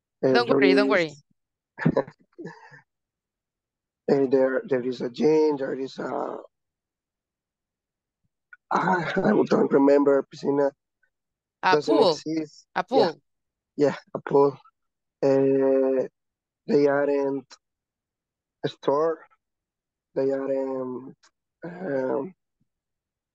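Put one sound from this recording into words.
A young woman speaks clearly and calmly over an online call, pausing between phrases.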